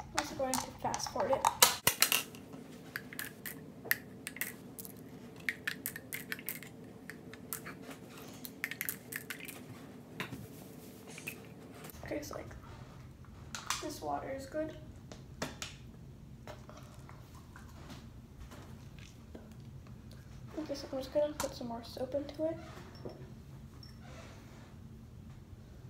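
A bottle cap clicks as a girl twists it.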